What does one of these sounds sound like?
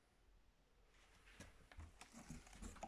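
Cardboard box flaps rustle and scrape.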